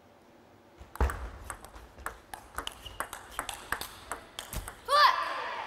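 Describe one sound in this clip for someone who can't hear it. A table tennis ball clicks quickly back and forth off paddles and the table.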